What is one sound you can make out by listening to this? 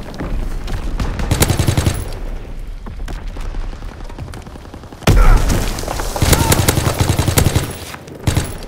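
Bursts of automatic gunfire ring out loudly.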